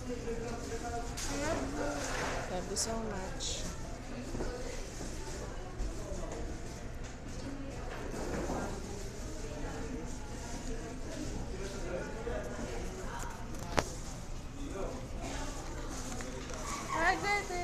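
A plastic fork scrapes food in a paper tray.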